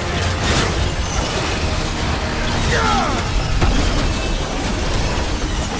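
Heavy melee blows slash and crash against a creature.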